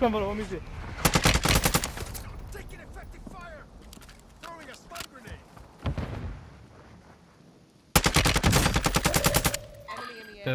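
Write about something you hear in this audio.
A rifle fires rapid bursts of shots close by.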